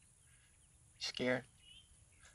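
A man says a few words close by.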